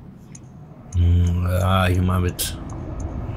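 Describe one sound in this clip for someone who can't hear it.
A bell rings out with a deep, ringing tone.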